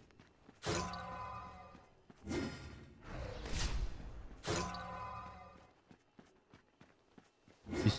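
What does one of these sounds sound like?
A magic spell whooshes and rings out in bursts.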